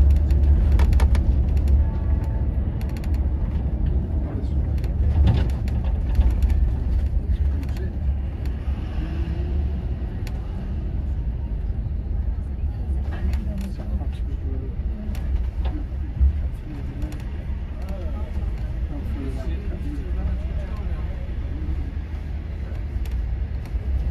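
Traffic hums along a busy street.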